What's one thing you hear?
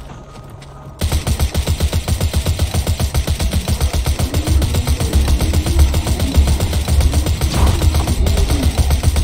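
Rapid gunfire rattles on and on.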